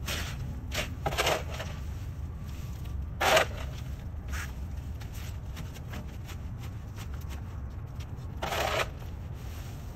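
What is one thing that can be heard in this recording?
A shovel scrapes and scoops dry leaves.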